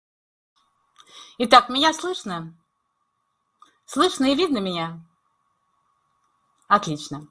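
An elderly woman speaks calmly over an online call, in short phrases with pauses.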